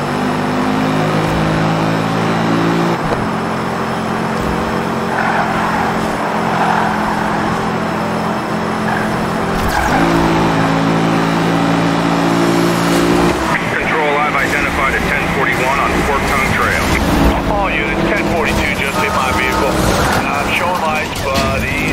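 A car engine roars at high speed, shifting gears.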